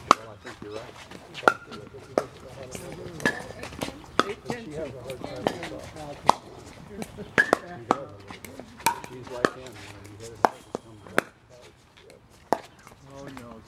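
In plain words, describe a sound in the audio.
Pickleball paddles strike a hard plastic ball outdoors with sharp pops.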